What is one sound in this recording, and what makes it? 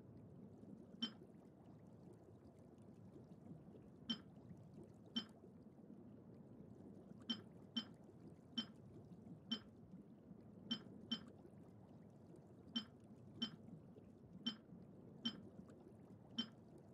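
Short, sharp menu clicks sound now and then.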